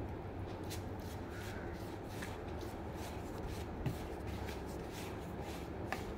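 A hand rubs and mixes dry flour with a soft rustle.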